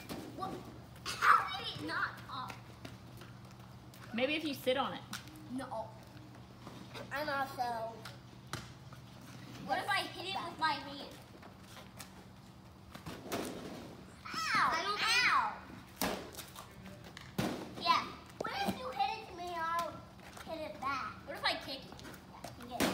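Young children talk and call out excitedly outdoors.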